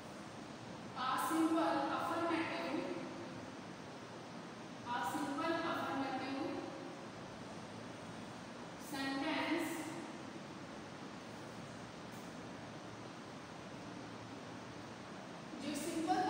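A woman speaks calmly and clearly, in short phrases.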